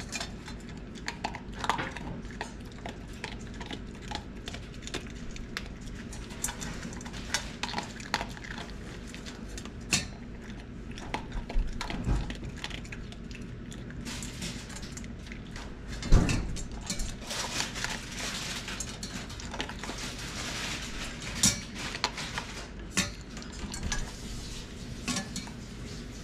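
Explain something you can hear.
A dog crunches and chews dry food from a metal bowl.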